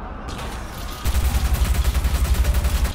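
A machine gun fires in a rapid burst.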